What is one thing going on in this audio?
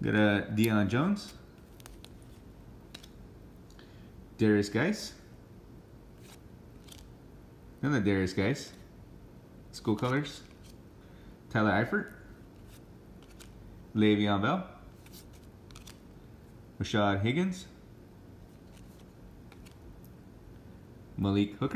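Stiff cards rustle and slide against each other as hands flip through a stack.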